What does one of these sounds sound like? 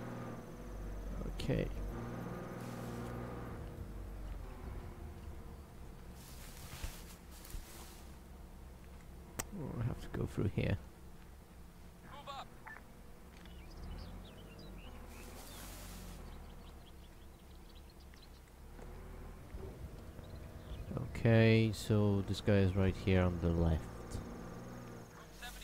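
Footsteps crunch through dry grass.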